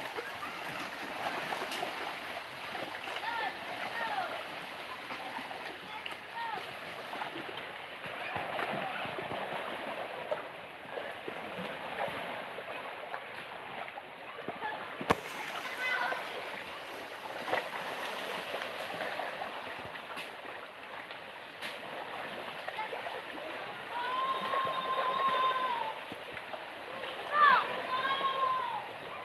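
Small waves lap gently against rocks.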